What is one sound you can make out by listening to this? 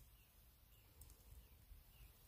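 Small pliers click softly against wire.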